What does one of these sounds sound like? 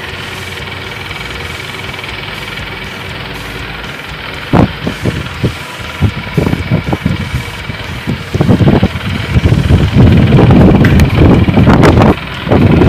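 Electric fans whir steadily.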